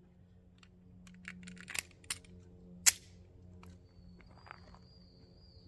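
A pistol's metal parts click and clack as it is reloaded.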